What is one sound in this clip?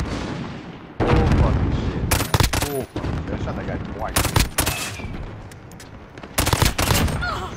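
A rifle fires rapid, loud gunshots.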